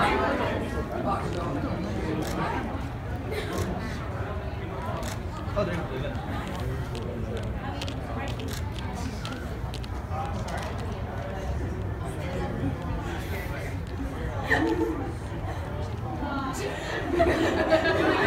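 Young women and men talk and call out with animation from some distance.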